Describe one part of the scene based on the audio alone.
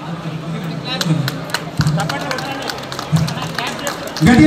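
A small crowd claps hands in a room.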